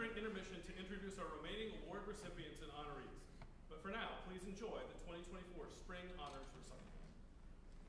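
A middle-aged man speaks calmly to an audience in an echoing hall.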